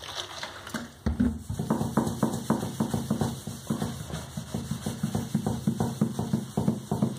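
A cloth rubs and scrapes over a metal sheet.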